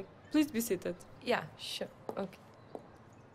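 A young woman speaks briefly and calmly nearby.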